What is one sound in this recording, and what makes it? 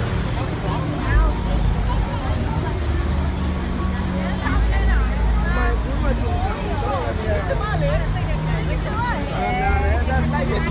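Fountain water splashes steadily.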